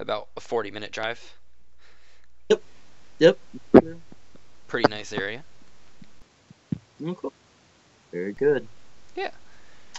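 A middle-aged man speaks calmly, heard through an online call.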